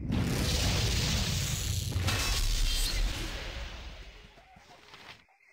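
A magic spell roars and rushes loudly, then fades.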